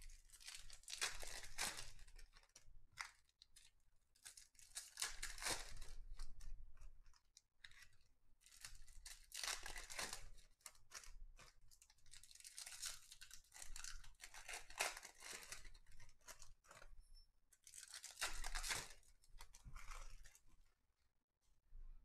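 Cards flick and shuffle rapidly through hands.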